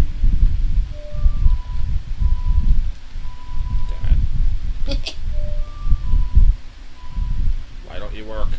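An ocarina plays a short, simple melody of clear, held notes, twice.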